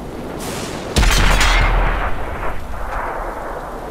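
A tank cannon fires with a loud boom that rolls away.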